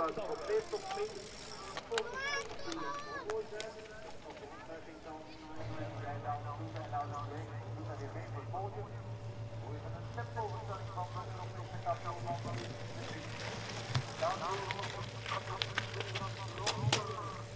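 Bicycle tyres crunch over a dirt track.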